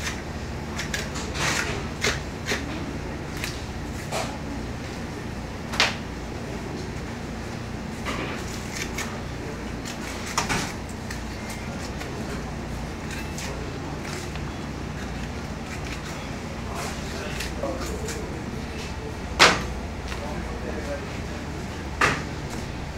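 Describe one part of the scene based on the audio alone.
A knife cuts through raw meat.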